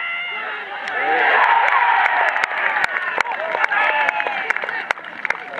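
Spectators cheer loudly.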